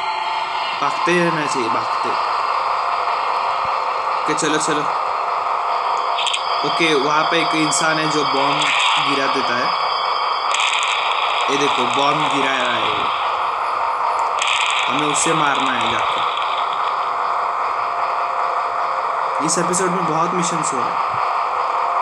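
A young man talks with animation into a headset microphone, in short bursts.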